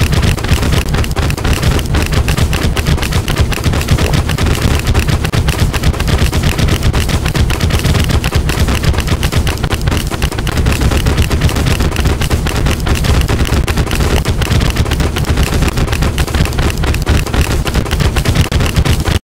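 Video game weapon effects fire rapidly with crackling hits.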